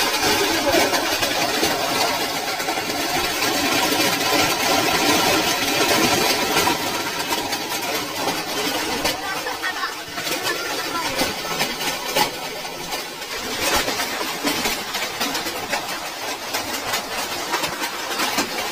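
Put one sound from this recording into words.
Hailstones clatter and patter densely on the ground.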